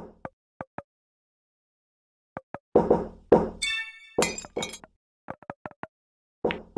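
Short electronic game blips sound again and again.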